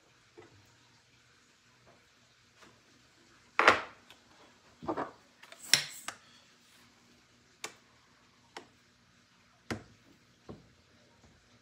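Metal and glass clink and knock now and then, close by.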